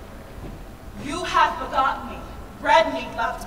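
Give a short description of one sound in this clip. A woman speaks loudly and dramatically into a microphone in an echoing room.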